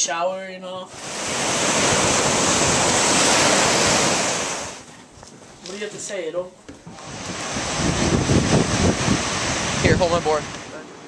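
Waves wash and break on a shore.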